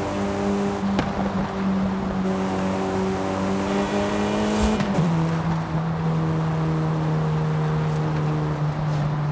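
A turbocharged four-cylinder sports sedan engine pulls at high revs.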